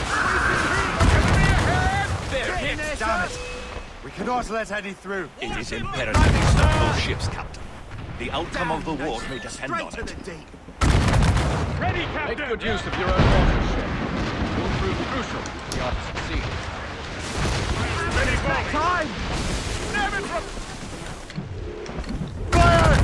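Cannons boom in loud blasts.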